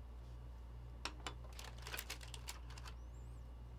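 Cards rustle and click as they are handled.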